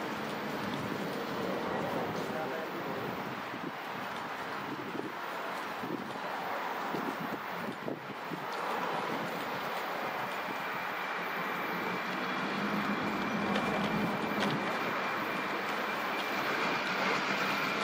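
Cars drive past on a nearby road with a rushing of tyres.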